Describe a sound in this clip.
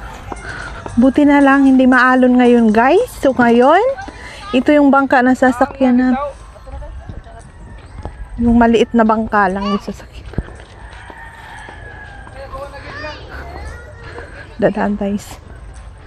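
A girl talks loudly and animatedly close by.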